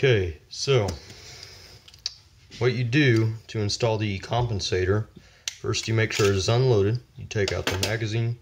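Metal parts of a pistol click as it is handled.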